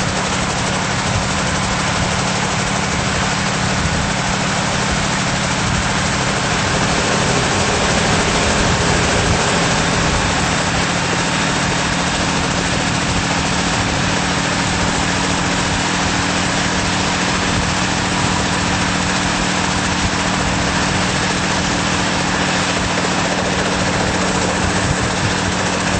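Helicopter rotor blades whir and thump.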